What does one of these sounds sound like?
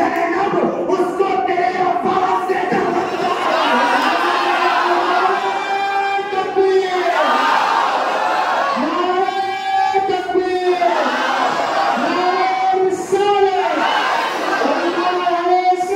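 A man sings loudly through a microphone and loudspeakers, with long held notes.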